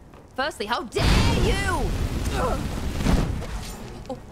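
A fire spell roars and crackles in bursts.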